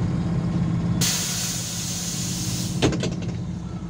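Compressed air hisses loudly from a bus's doors.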